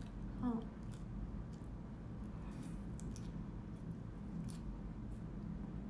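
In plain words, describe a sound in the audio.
A young woman slurps and chews noodles.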